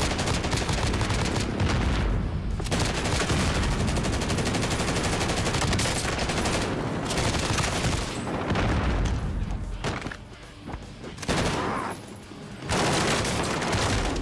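Rapid automatic gunfire rattles in bursts.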